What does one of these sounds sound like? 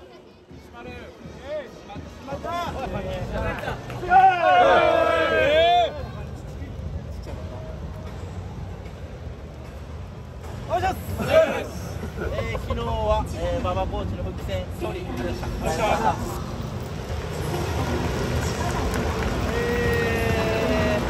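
A crowd murmurs in a large open stadium.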